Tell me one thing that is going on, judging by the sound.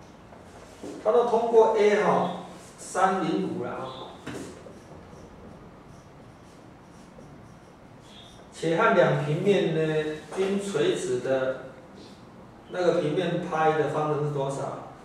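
A man speaks calmly, explaining, close by.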